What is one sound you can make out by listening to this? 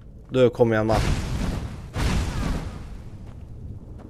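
A fire spell whooshes and bursts.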